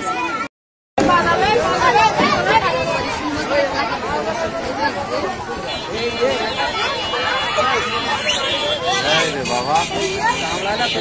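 A crowd of men and boys chatter and shout loudly outdoors.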